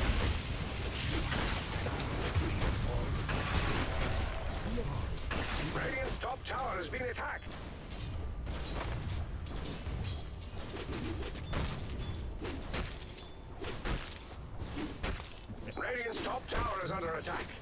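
Game battle sounds of spells blasting and weapons clashing ring out.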